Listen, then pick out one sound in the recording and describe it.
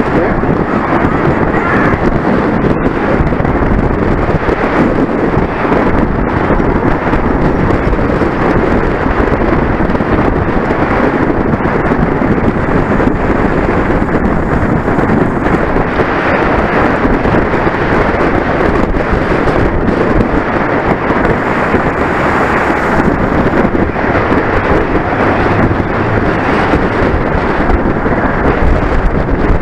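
Strong wind roars steadily past a microphone.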